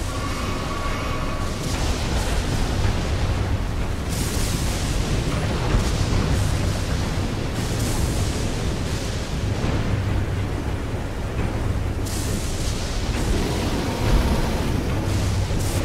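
Water splashes loudly under running feet.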